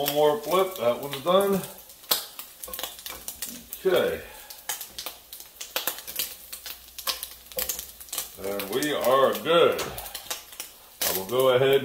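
Meat sizzles and crackles in a hot pan.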